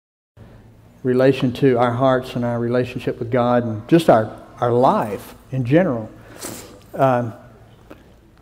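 A middle-aged man speaks calmly into a microphone over loudspeakers in a large hall.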